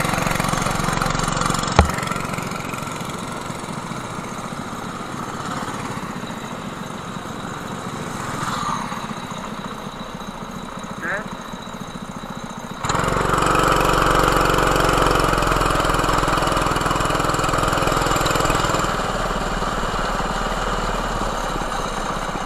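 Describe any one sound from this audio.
A go-kart engine buzzes loudly close by.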